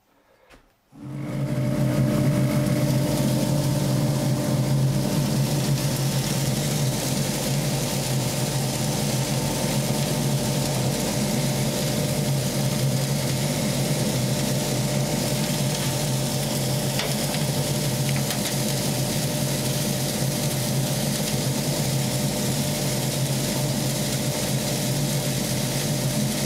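A dust collector motor hums loudly and steadily.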